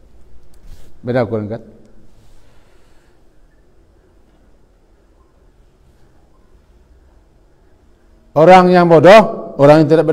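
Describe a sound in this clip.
An older man speaks into a microphone in a slow, drawn-out preaching voice, with long pauses.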